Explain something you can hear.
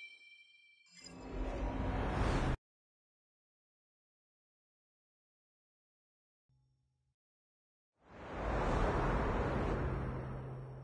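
A deep whoosh swells and cuts off.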